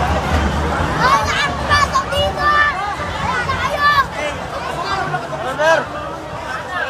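Young men shout and whoop excitedly nearby.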